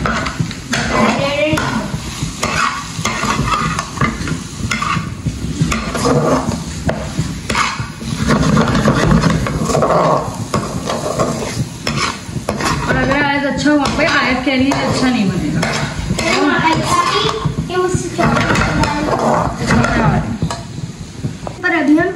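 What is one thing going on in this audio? A metal spatula scrapes and clatters against a frying pan.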